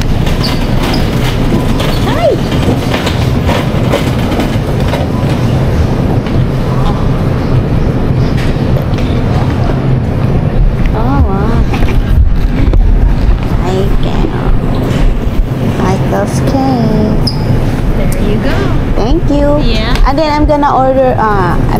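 Shopping cart wheels rumble and rattle across a hard floor.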